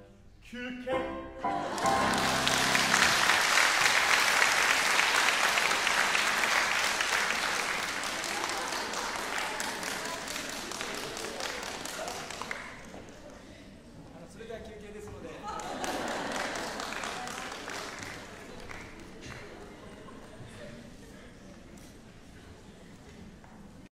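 A grand piano plays a loud, rushing passage that slowly softens, ringing in a large hall.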